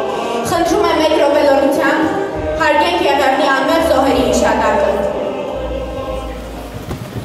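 A young woman sings into a microphone through loudspeakers in a large echoing hall.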